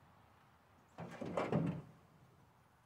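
A cardboard box thumps down into a pickup bed.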